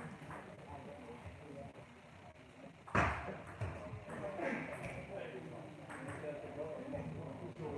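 A table tennis ball clicks back and forth on paddles and a table.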